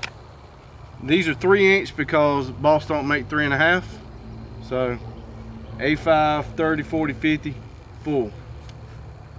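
A man speaks calmly to the listener close by.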